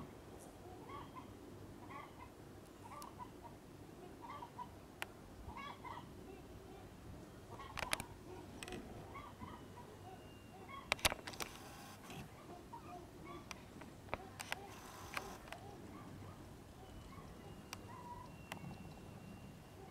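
Hens cluck softly and repeatedly close by.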